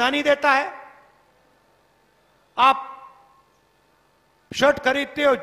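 A man speaks forcefully into a microphone over loudspeakers, his words echoing outdoors.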